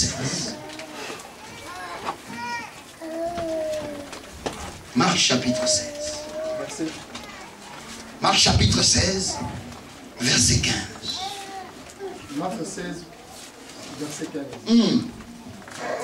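A man speaks with animation through a microphone in a large room.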